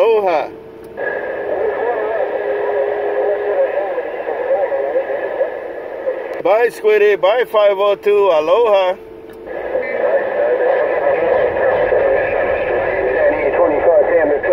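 A radio hisses with loud static.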